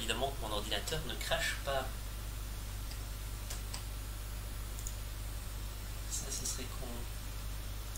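A man speaks casually close to a microphone.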